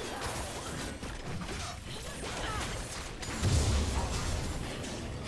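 Magic spell effects whoosh and crackle in a video game battle.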